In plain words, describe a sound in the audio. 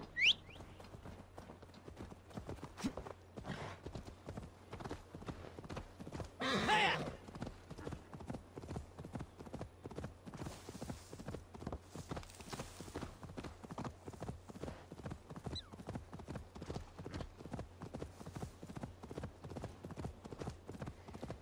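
A horse's hooves gallop steadily on a dirt track.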